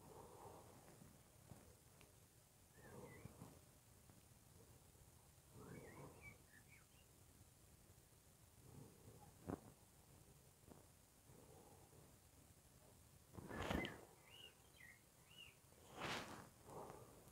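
A dog trots softly over grass outdoors.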